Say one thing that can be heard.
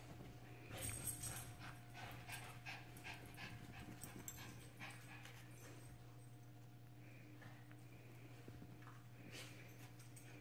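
Small dogs growl playfully.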